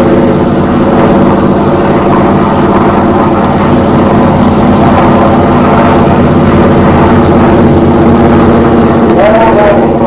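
A propeller plane's engine drones steadily overhead.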